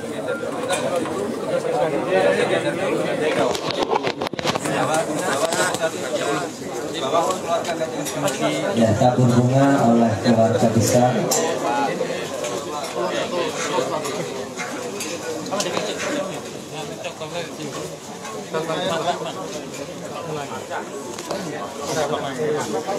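A crowd of men and women murmur and talk nearby outdoors.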